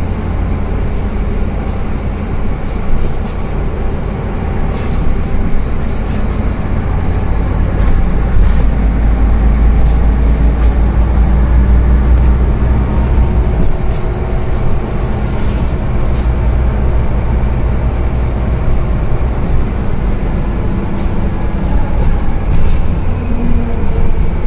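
The bus body rattles and clicks over the road.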